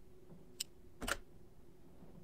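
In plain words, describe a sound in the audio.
A safe's lock clunks loudly once.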